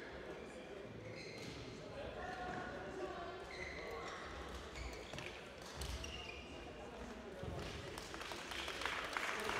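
A shuttlecock is struck back and forth with rackets.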